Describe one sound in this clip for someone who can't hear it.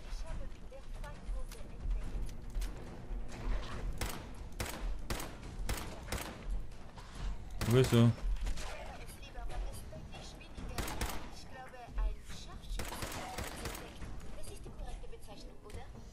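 Gunfire from an automatic rifle cracks in bursts.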